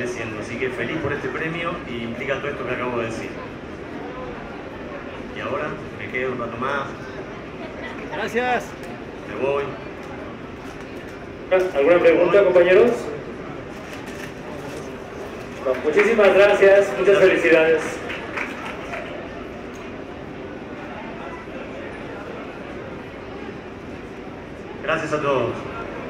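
A man speaks into a microphone over loudspeakers in a large room, pausing often.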